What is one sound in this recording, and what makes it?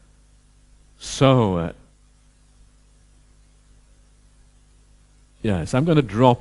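An elderly man speaks calmly into a headset microphone, with pauses.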